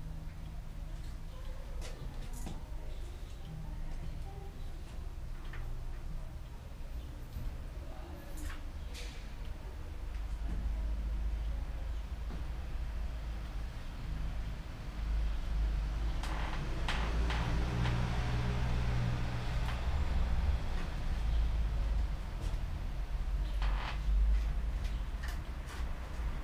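Metal bicycle parts click and clank as a man works on a bicycle.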